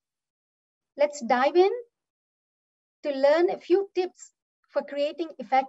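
A young woman speaks calmly through a microphone on an online call.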